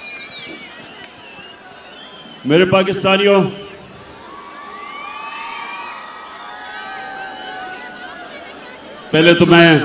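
A large crowd cheers and whistles outdoors.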